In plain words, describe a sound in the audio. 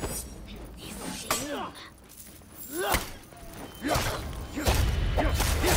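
Metal blades clash and ring sharply.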